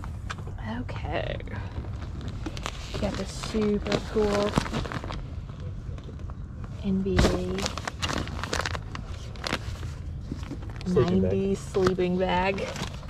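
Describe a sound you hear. A plastic-wrapped bundle crinkles as it is handled.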